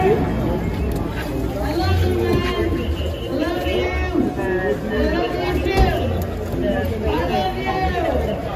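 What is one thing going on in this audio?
A crowd of men shout and talk over each other close by.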